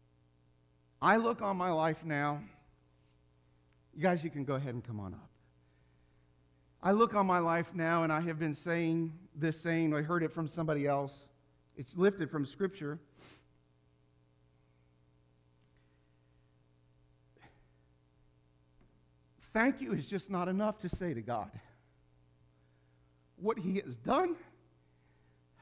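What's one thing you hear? A middle-aged man speaks with feeling into a microphone, in short bursts with long pauses.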